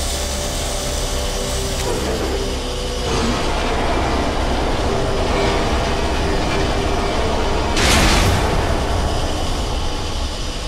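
A small remote-controlled vehicle's engine hums steadily as it drives.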